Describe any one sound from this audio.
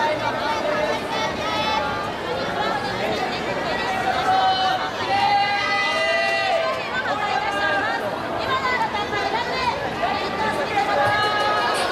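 Young people sing together on a stage through loudspeakers.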